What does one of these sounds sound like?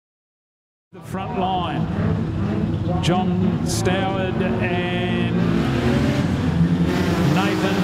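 Race car engines roar and rev loudly.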